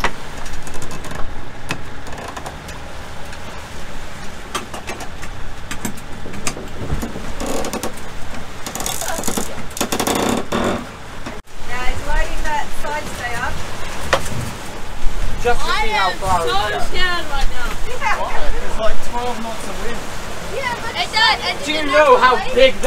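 Waves splash against a boat's hull.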